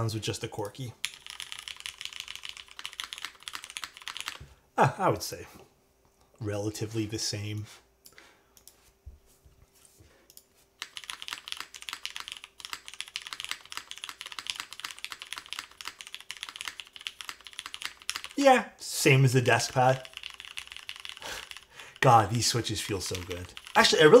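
Keys clack rapidly on a mechanical keyboard.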